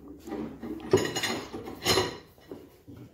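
A wrench clicks as it turns a wheel nut.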